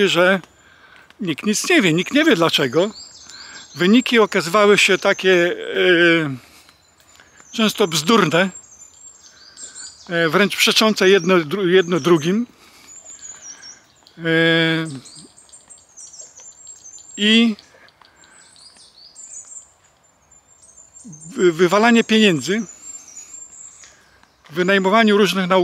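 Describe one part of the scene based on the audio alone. An elderly man talks calmly, close to a microphone, with pauses.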